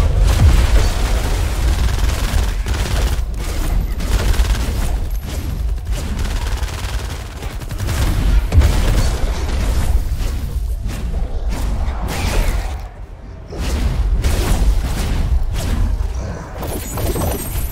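Energy blasts boom and crackle.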